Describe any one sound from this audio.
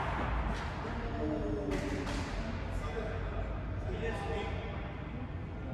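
A man calls out across the court.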